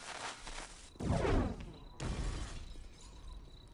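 A firebomb bursts into roaring, crackling flames.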